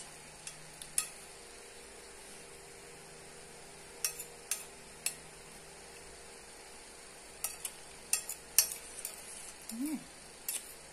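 A spoon clinks and scrapes against a plate.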